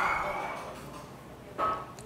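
A man chews food noisily close to a microphone.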